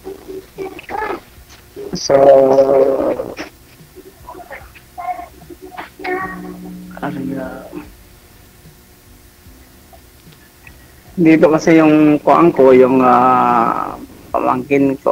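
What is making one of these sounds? A middle-aged man talks with animation over an online call.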